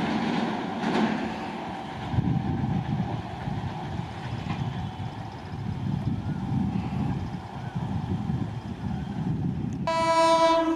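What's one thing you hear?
A train rumbles away into the distance.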